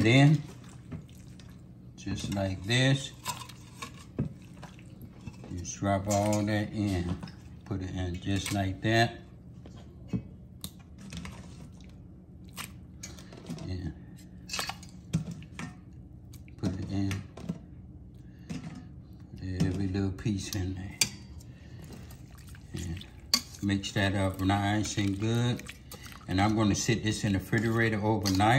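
A wire whisk clinks and scrapes against a metal bowl.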